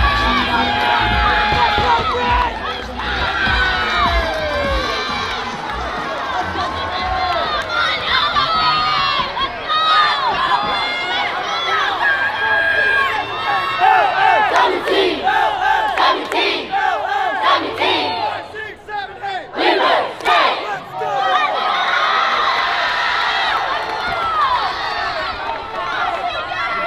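A crowd of young men and women cheers and yells outdoors.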